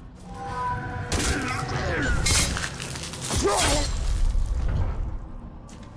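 Heavy blows thud in a fight.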